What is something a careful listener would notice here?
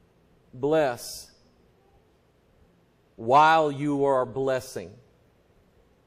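A middle-aged man speaks slowly and emphatically into a microphone in a large, echoing room.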